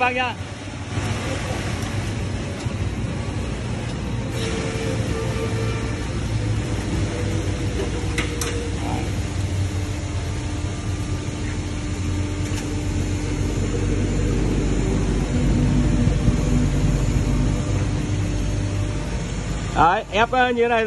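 A hydraulic machine hums steadily with a low drone.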